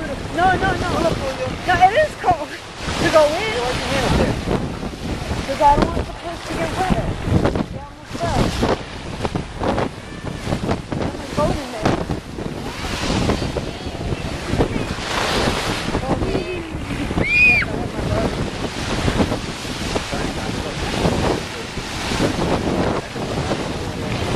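Wind blows hard past the microphone outdoors.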